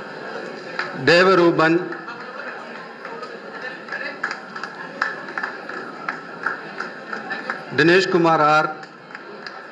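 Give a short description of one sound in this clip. A man's voice calls out over a loudspeaker in a large hall.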